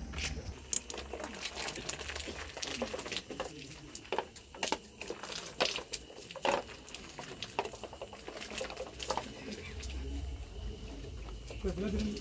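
Soil and grit patter down into a pit in sharp bursts.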